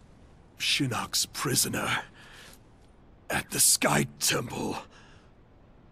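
A man speaks in a deep, strained voice, close by.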